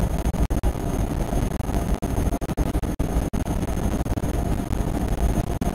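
An electric train rumbles at speed through a tunnel.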